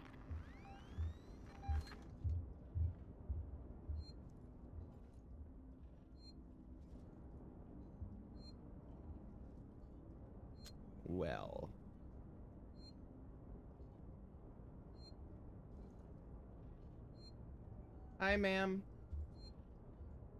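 A young man speaks briefly into a microphone.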